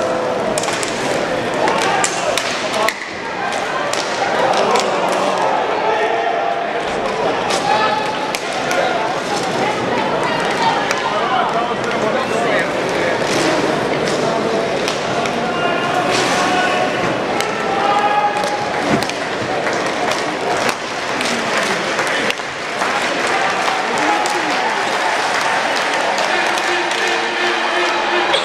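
Hockey sticks clack against a puck and each other.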